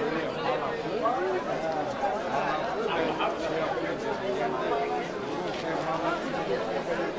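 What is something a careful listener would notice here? A large crowd of men, women and children chatters loudly outdoors.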